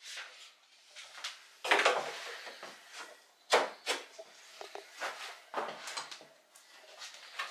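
Hands rub and knock against a wooden wall panel in short bursts.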